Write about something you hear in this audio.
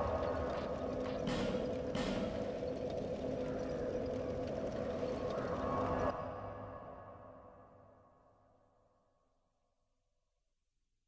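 A magical warping sound swells and then slowly fades away.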